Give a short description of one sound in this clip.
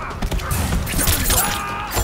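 A blade whooshes and slices through the air.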